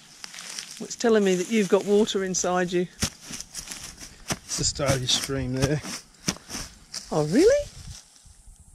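A man talks calmly and closely outdoors.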